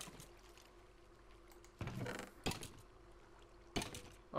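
A wooden chest opens with a creak.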